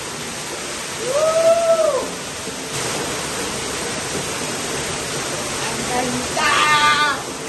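A young man shouts excitedly, echoing in a cave.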